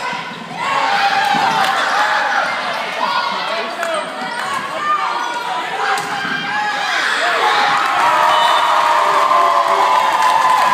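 A crowd cheers and shouts loudly in a large echoing gym.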